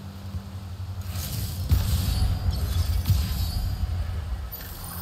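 Magic blasts crackle and roar loudly.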